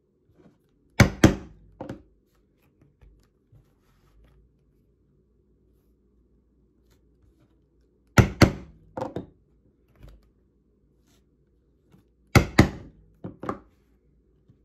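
A mallet strikes a metal punching tool in sharp, ringing knocks.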